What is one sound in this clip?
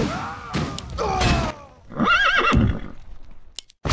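Weapons clash and spells burst in a small battle.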